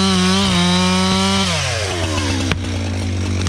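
A chainsaw runs at full throttle, then winds down.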